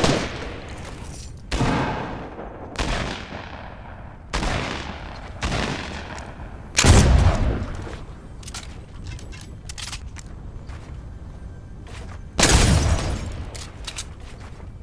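Gunshots ring out one at a time with echoing tails.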